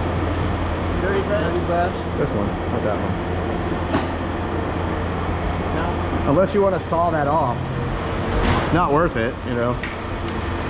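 A man talks close by, casually.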